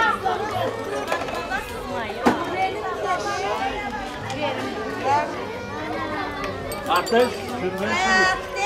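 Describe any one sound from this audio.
Several women and men talk over one another nearby, outdoors.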